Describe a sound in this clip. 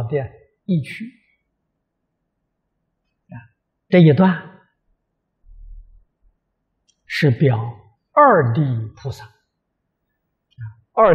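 An elderly man speaks calmly and warmly into a close microphone, with pauses between phrases.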